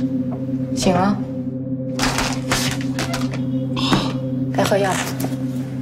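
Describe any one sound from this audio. A young woman speaks quietly and coldly close by.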